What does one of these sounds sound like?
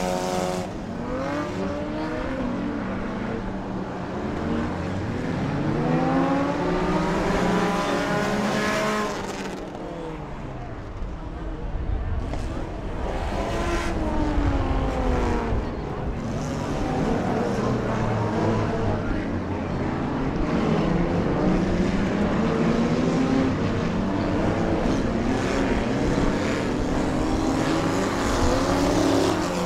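Car engines roar and whine, rising and falling as cars race around a track.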